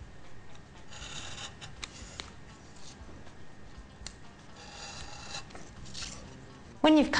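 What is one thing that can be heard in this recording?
A craft knife scrapes and scratches as it cuts through card.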